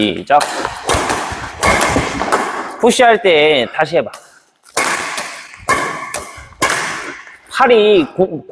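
A racket hits a shuttlecock with sharp smacks that ring through a large echoing hall.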